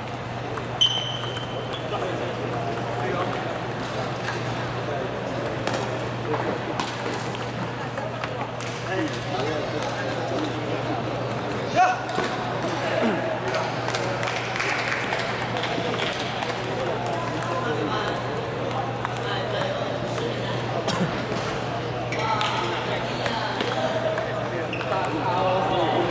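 Table tennis balls click against paddles and a table in a large echoing hall.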